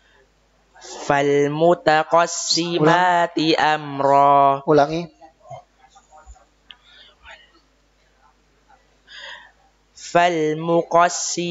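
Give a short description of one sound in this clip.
A young man chants a recitation in a melodic voice through a microphone.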